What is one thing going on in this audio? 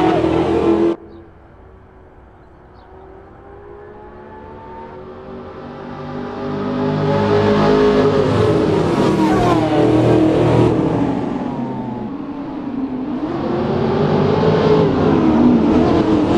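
Several race car engines grow louder as a pack of cars approaches.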